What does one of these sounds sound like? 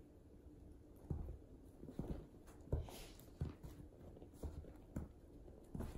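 Fabric rustles and thumps as a small dog is handled.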